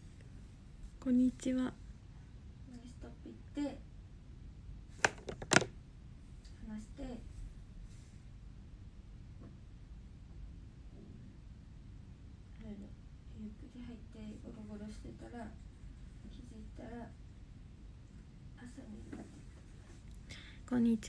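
A young woman speaks softly and haltingly, close to a phone microphone.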